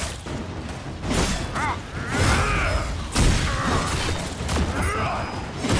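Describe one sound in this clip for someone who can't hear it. Metal weapons clang in a fight.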